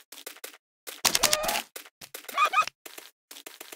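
A pig grunts and squeals when struck.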